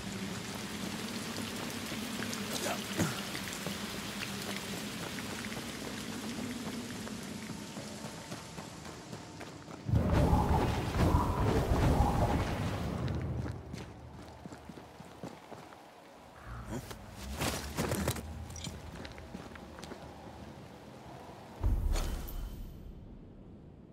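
Footsteps crunch on rock.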